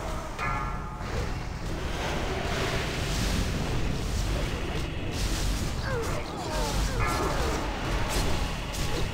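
Spell effects whoosh and crackle in a busy fight.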